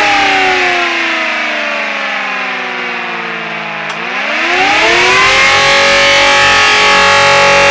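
An electric motor whines, slowing down in pitch and then speeding back up to a steady high hum.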